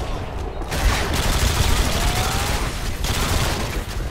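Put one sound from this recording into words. Rapid gunfire bursts out at close range.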